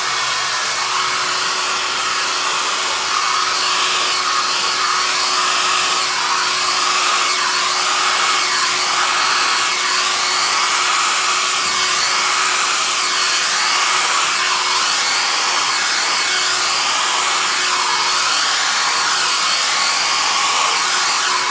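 A hair dryer blows steadily close by.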